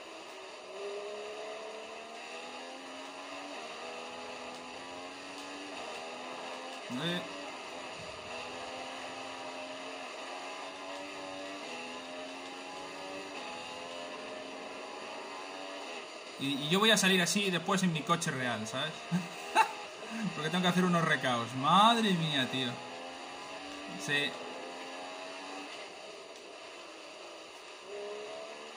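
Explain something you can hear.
A racing car engine whines steadily, rising in pitch as it shifts up through gears.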